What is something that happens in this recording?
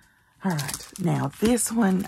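A plastic packet rustles as it is handled.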